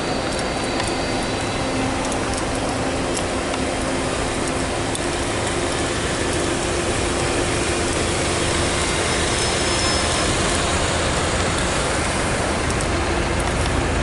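Traffic rumbles steadily on a busy street.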